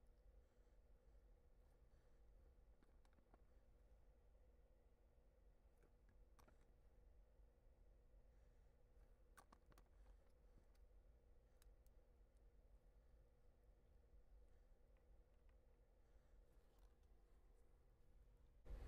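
Small plastic parts click faintly.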